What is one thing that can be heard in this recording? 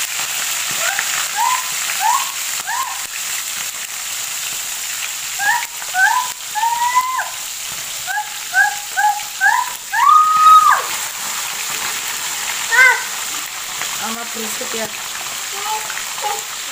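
Oil sizzles and hisses steadily in a frying pan.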